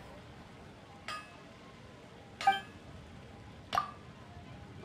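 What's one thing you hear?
A hammer strikes metal on an anvil in slow, ringing blows.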